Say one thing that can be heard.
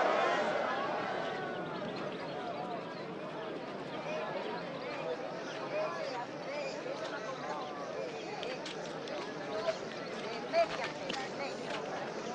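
A crowd murmurs and chatters quietly.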